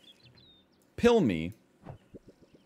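A man speaks briefly and with animation, close to a microphone.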